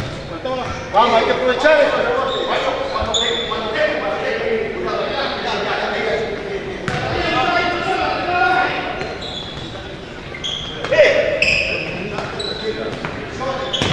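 Men shout to each other across an echoing indoor hall.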